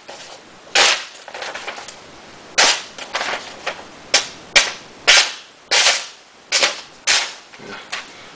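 A knife slices through paper with sharp swishing cuts.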